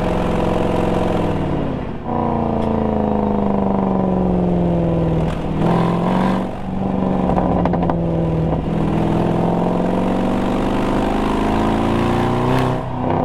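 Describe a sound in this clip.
A car engine drones loudly, its pitch falling and rising as the car shifts gears.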